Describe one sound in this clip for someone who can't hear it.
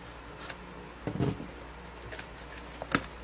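Cardboard flaps tear and crinkle as a box is opened.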